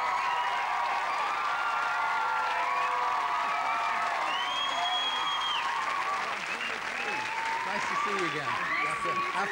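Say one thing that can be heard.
A large crowd claps and applauds steadily.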